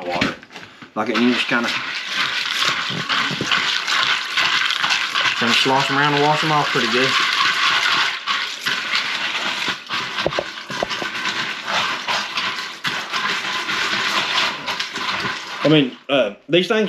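Hands stir dry beans in water, rattling and sloshing.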